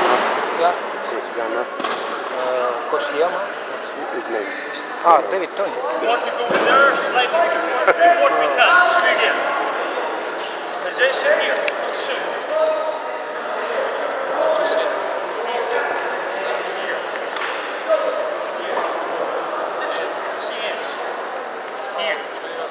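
Many voices chatter in a large echoing hall.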